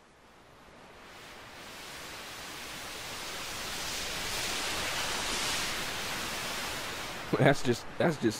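A synthesizer plays a soft airy pad that slowly swells and then fades.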